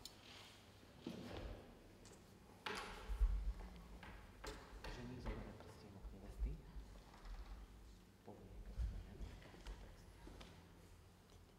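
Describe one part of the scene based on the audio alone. A man speaks calmly nearby, his voice echoing in a large room.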